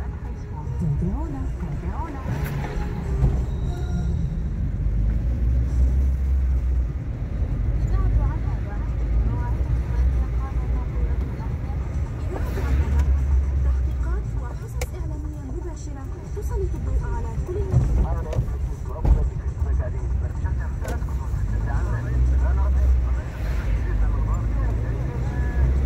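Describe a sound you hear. A car engine hums steadily at low speed from inside the car.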